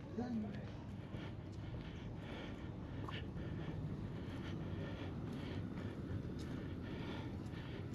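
Footsteps scuff on cobblestones nearby.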